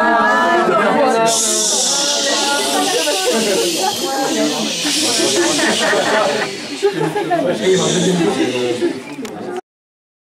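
A crowd of people talks and chatters loudly nearby.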